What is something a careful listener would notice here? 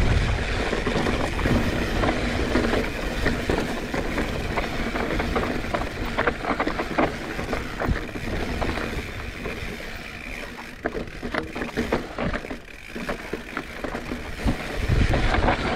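Bicycle tyres crunch and rattle over a rough dirt and rock trail.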